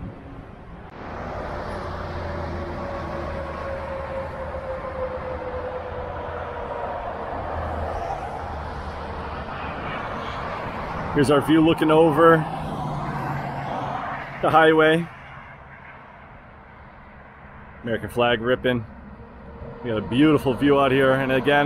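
Vehicles rush past on a highway below.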